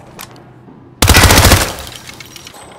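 A gun fires a rapid burst of shots indoors.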